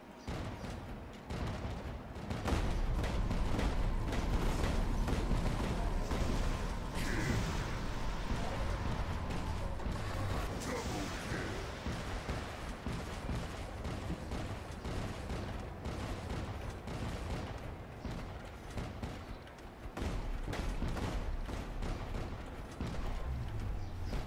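Heavy mechanical footsteps thud and clank.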